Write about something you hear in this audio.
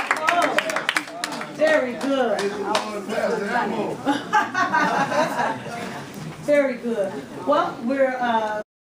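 Men and women talk and laugh nearby in a crowded room.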